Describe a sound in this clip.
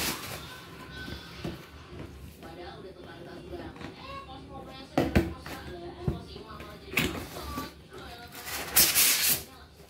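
A cardboard box scrapes and thumps as it is handled and opened.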